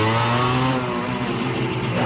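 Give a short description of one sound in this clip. A motorcycle engine hums as it rides away down a street.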